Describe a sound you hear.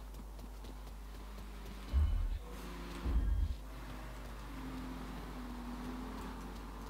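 Footsteps run quickly on concrete.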